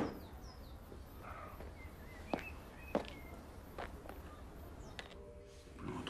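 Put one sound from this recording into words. Footsteps tap on pavement outdoors.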